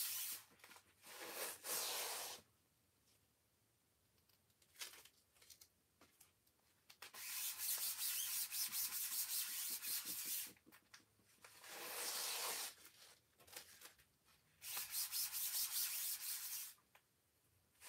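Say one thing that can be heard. A plastic tool rubs and scrapes over paper in bursts.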